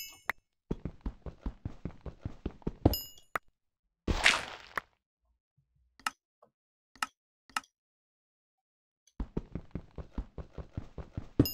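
A pickaxe chips rapidly at stone in quick, repeated taps.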